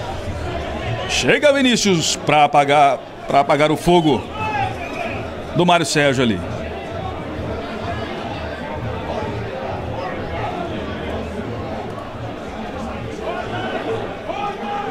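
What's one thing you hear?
A crowd murmurs outdoors.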